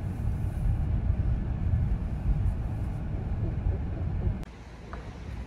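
A car engine rumbles steadily from inside the moving car.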